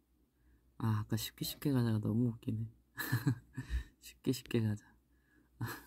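A young man laughs close to a phone microphone.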